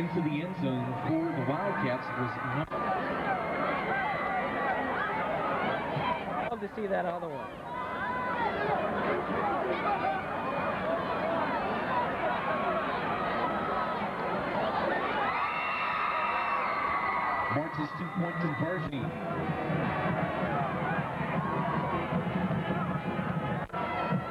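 A crowd of spectators cheers and chatters loudly outdoors.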